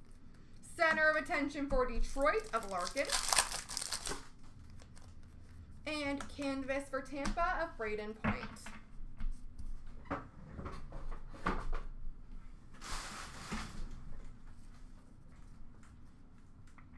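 Stiff plastic card sleeves rustle and click as they are sorted by hand.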